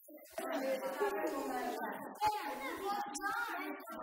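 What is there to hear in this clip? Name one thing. Children chatter around a table.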